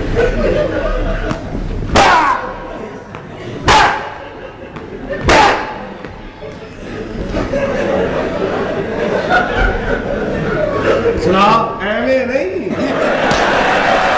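An audience laughs and cheers in a large hall.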